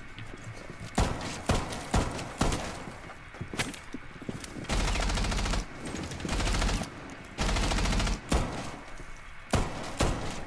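Rapid gunshots crack loudly, with sharp bursts.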